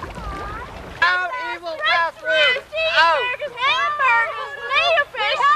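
A group of people sing together outdoors.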